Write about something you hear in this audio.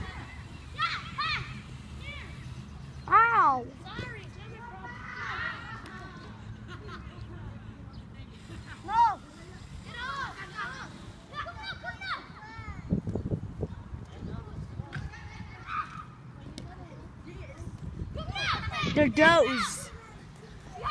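Children shout and call out to each other outdoors at a distance.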